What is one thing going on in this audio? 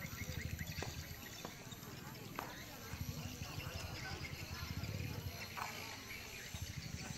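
A man speaks steadily into a microphone, heard through a loudspeaker outdoors.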